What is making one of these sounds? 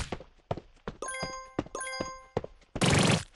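A game's bright electronic chimes ring out twice in quick succession.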